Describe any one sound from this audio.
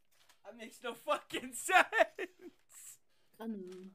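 A teenage boy laughs over an online call.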